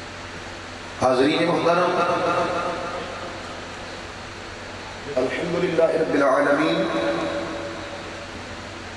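A man chants melodiously into a microphone over loudspeakers, with echo.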